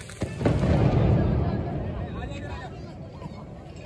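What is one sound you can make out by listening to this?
A firework bursts overhead with a loud boom that rumbles away.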